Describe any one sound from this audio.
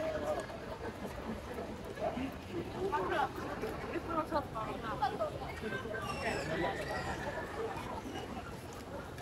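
A clown figure cackles and laughs loudly through a loudspeaker.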